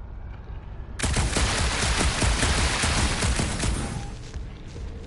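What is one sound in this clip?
A mass of rubble bursts apart with a loud, rushing roar.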